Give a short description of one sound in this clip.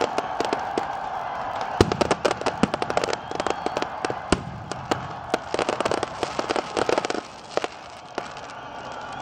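Fireworks burst with rapid crackling pops and booms outdoors.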